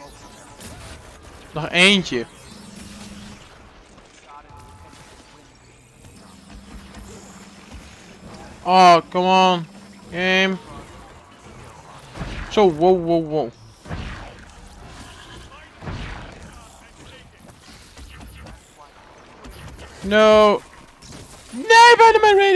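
Crackling energy blasts whoosh and burst.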